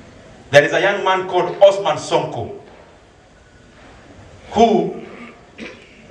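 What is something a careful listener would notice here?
A man speaks loudly and forcefully into a microphone, heard through loudspeakers.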